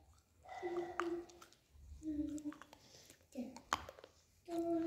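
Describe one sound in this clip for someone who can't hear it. A hard stick clicks against teeth.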